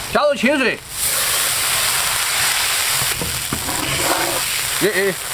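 Water pours into a hot wok and sizzles.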